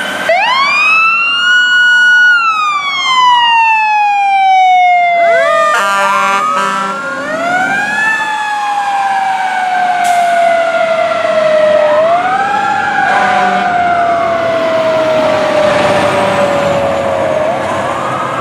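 A fire engine siren wails loudly, rising and falling.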